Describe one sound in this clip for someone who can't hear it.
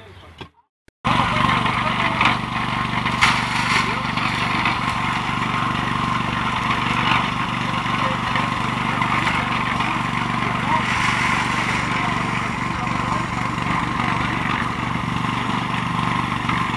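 A cement mixer drum churns with a steady rumble.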